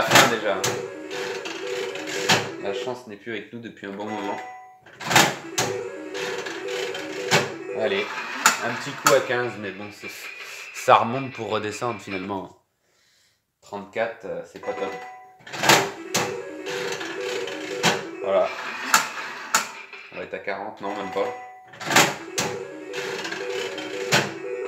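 A slot machine plays a jingling electronic tune.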